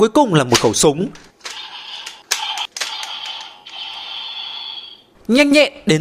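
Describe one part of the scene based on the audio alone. Plastic parts of a toy click as they are turned and snapped into place.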